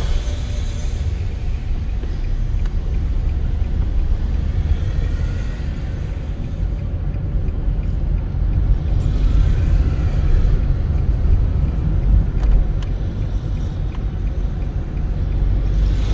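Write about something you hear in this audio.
A car engine hums steadily from inside the cabin while driving.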